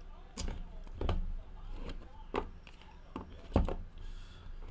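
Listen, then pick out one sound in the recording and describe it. Cardboard boxes knock and slide against each other.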